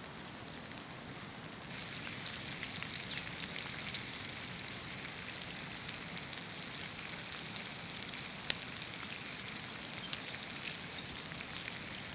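Bacon sizzles and crackles on a hot grill.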